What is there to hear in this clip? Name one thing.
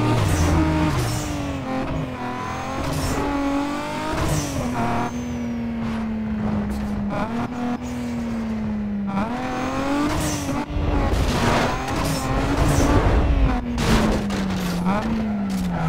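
Tyres screech as a car skids through turns.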